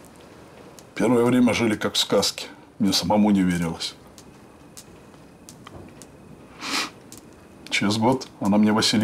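A middle-aged man speaks slowly in a low, calm voice close by.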